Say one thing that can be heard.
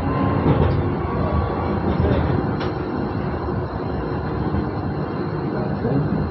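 A tram rumbles and rattles steadily along its rails, heard from inside the cab.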